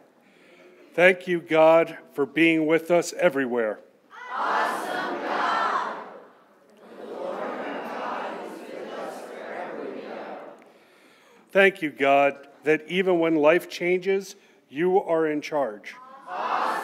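A man reads out calmly through a microphone in an echoing room.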